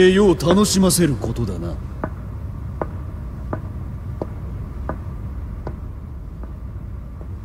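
Heavy footsteps thud slowly on a hard floor.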